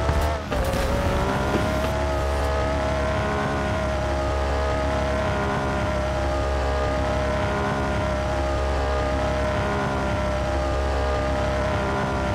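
Tyres skid and hiss over loose sand.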